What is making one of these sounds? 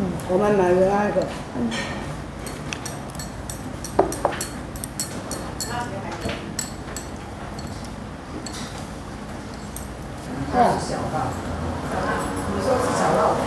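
A young woman talks calmly close by, heard through a microphone.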